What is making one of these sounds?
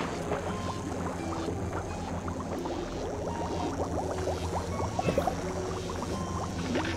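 Bubbles gurgle and bloop underwater.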